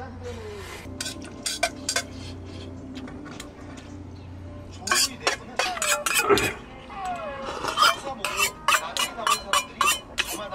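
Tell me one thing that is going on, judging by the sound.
A metal pot clanks as it is handled.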